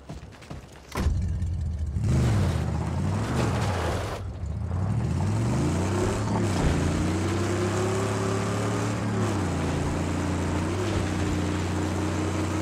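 A car engine roars and drones, rising and falling in pitch as the car drives over rough ground.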